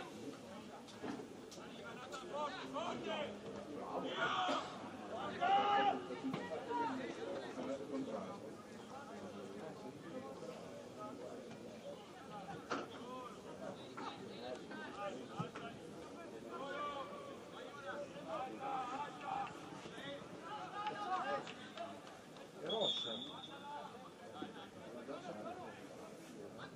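Young men shout to one another from a distance outdoors.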